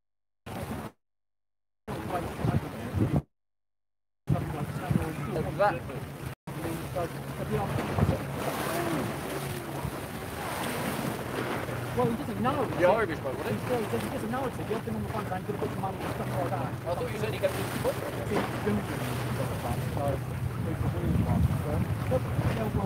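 Water laps gently against a wall.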